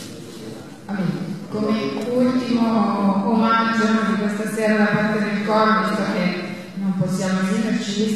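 A woman sings into a microphone in an echoing hall.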